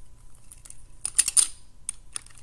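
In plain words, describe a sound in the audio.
Small plastic bricks click and rattle as hands handle them.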